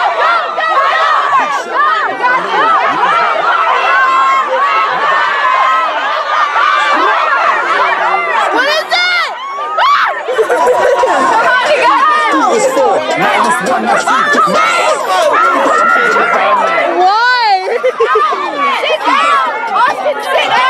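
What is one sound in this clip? A group of teenagers cheers and shouts excitedly outdoors.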